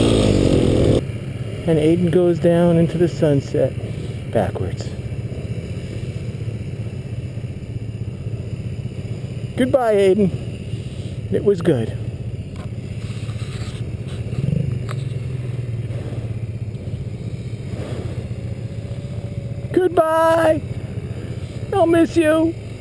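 A quad bike engine drones in the distance.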